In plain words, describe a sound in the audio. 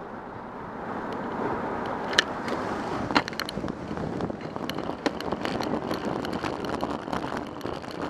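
Tyres roll over the road as traffic pulls away.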